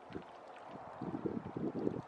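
A duck quacks softly close by.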